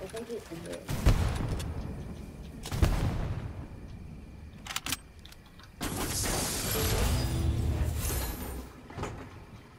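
Wooden and metal building pieces snap into place with heavy thuds.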